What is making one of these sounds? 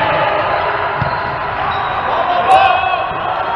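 A volleyball is struck with a hand in an echoing hall.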